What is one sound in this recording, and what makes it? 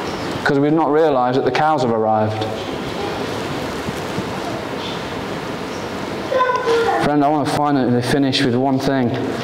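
A young man sings in an echoing hall.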